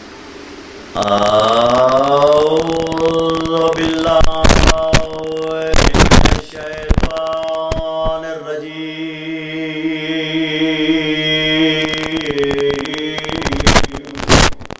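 A man chants in a long, drawn-out voice through a loud echoing loudspeaker.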